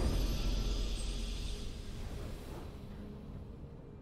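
A triumphant game fanfare rings out and fades away.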